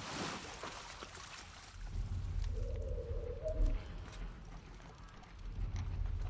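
Soft footsteps shuffle over gritty debris.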